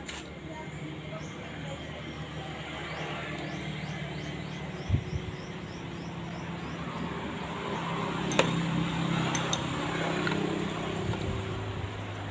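A metal pulley scrapes softly as a hand turns it.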